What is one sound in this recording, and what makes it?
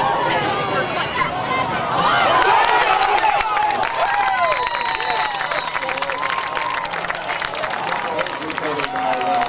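A crowd of spectators cheers and shouts outdoors.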